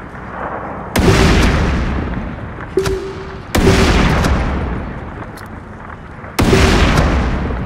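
Sniper rifle shots boom loudly and echo away.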